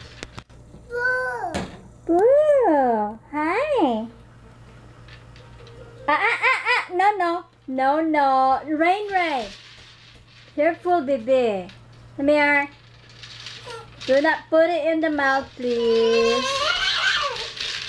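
A toddler babbles and squeals in a high voice close by.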